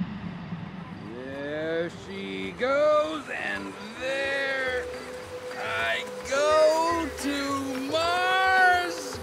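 A coyote yips and howls in high, wavering cries.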